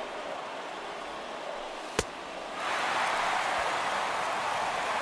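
A large stadium crowd murmurs steadily, then swells louder.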